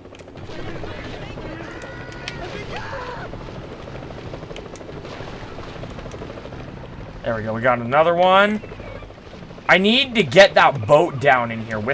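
Water churns and splashes in a boat's wake.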